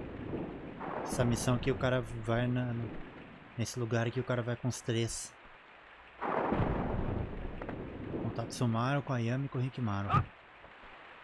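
A young man talks into a microphone close by, in short bursts.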